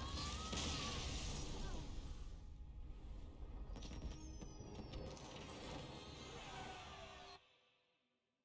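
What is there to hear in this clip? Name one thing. A loud explosion crashes and debris shatters.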